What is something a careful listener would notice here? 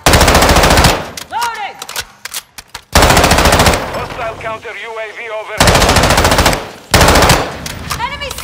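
Rapid automatic gunfire rattles in loud bursts.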